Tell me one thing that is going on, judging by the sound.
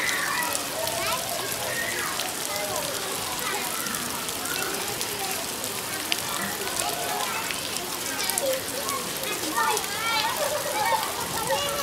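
Water flows and gurgles steadily nearby.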